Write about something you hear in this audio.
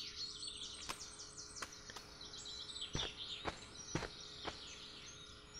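Light footsteps patter on a dirt path.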